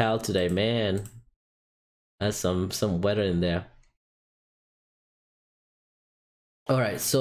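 A young man speaks calmly and close into a microphone, with pauses.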